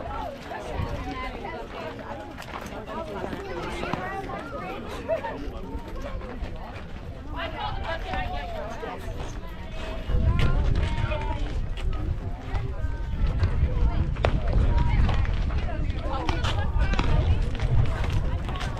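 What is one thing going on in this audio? Young women call out and cheer across an open field.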